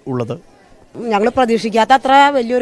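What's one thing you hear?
An elderly woman speaks into a microphone.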